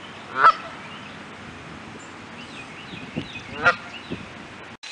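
Geese honk loudly outdoors.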